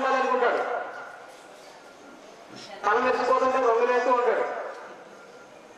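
A young man sings into a microphone, holding long notes.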